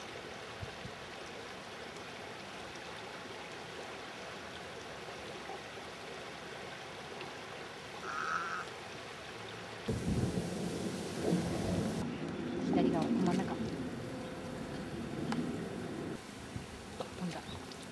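A shallow stream trickles and murmurs steadily.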